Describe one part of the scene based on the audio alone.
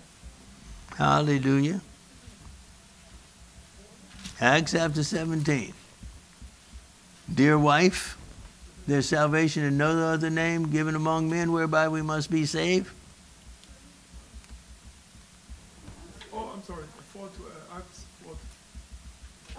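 An older man speaks slowly and calmly into a microphone, in a room with some echo.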